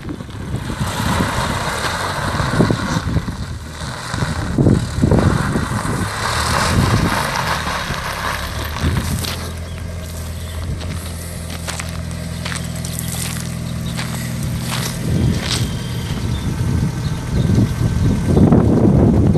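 Wind gusts blow across the microphone outdoors.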